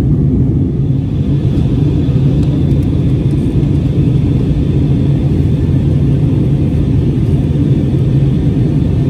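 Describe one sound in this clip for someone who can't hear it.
A jet airliner's engines roar steadily from inside the cabin.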